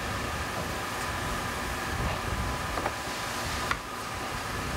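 A brush scrapes softly over pottery.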